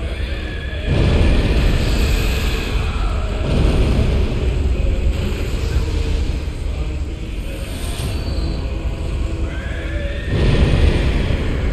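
Heavy blows strike and thud.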